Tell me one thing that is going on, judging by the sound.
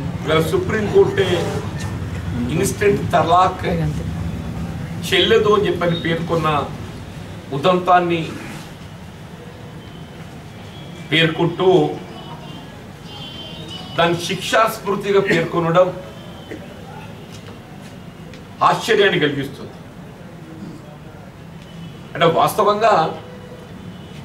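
An elderly man speaks emphatically into a nearby microphone, in bursts with pauses.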